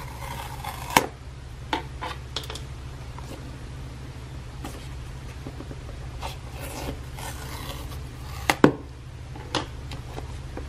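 Cardboard taps and knocks softly.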